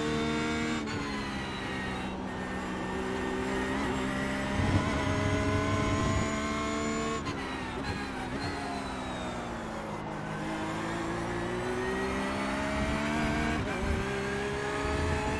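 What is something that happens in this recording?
A racing car engine roars steadily, its pitch falling and rising as the car brakes and speeds up through gear changes.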